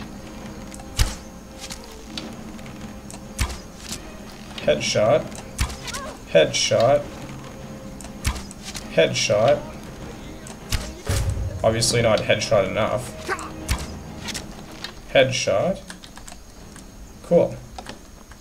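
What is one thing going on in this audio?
A bowstring twangs as arrows are loosed, again and again.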